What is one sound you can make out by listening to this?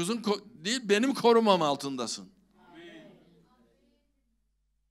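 An elderly man speaks with animation through a microphone in a room with a slight echo.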